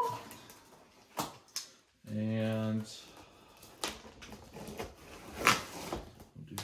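Plastic strapping snaps and scrapes against cardboard.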